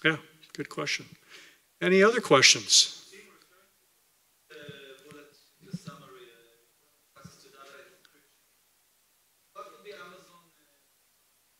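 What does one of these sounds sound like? A man speaks through a microphone over loudspeakers in a large room, in short bursts with pauses.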